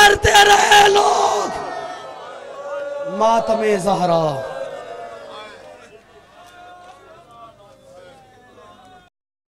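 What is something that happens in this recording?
A man speaks loudly and with passion over a loudspeaker, echoing outdoors.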